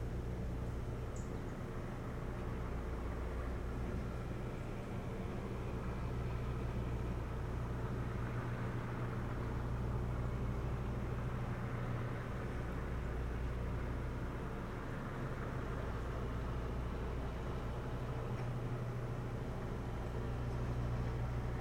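Wind blows steadily across a microphone outdoors.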